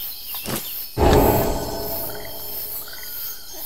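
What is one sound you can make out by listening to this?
A deep magical whoosh swells and fades away.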